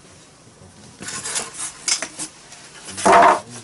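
Foam packing and cardboard rustle and scrape as they are handled.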